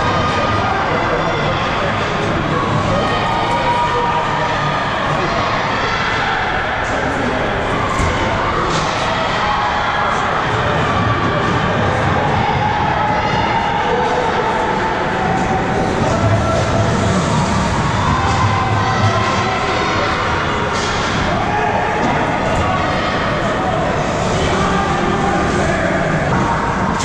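Skates scrape and swish across the ice.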